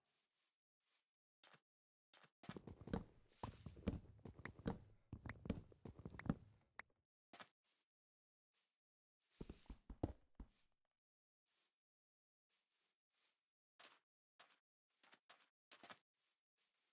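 Footsteps tap softly on grass and sand.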